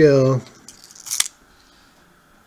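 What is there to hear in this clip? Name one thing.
A metal chain clatters onto a small plastic scale.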